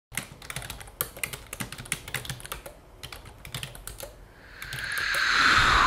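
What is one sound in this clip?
Fingers tap quickly on a laptop keyboard, the keys clicking.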